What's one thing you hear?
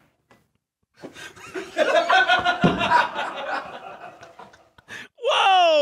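A young man laughs loudly and wildly into a microphone.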